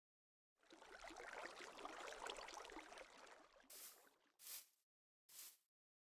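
Water splashes as a fishing float is cast and reeled in.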